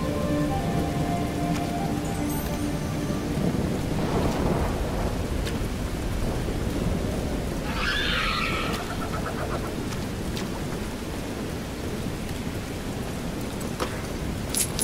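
Footsteps scuff steadily on hard ground.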